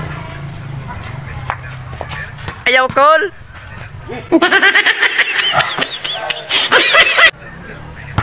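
A volleyball is struck with a slap.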